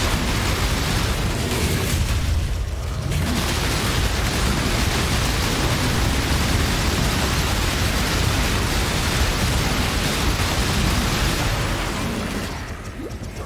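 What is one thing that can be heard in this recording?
Magic spells crackle and burst in a dense, noisy rush.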